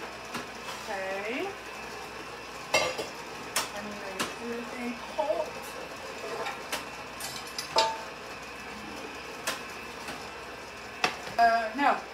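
Kitchen utensils clink and clatter.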